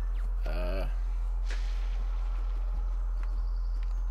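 Paper confetti bursts with a soft rustling whoosh.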